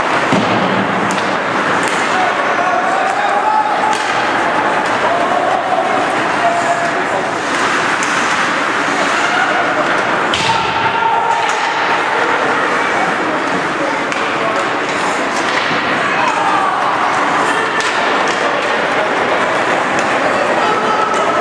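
A crowd of spectators talks and cheers.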